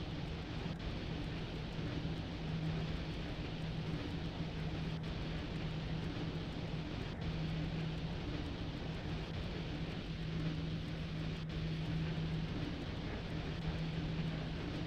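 An electric train's motor hums steadily.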